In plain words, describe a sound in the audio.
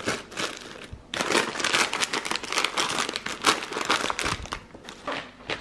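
Plastic bags and a snack packet rustle.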